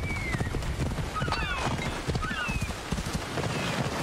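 A horse gallops on sand.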